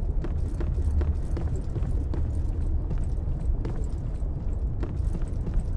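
Footsteps thud steadily across a wooden floor.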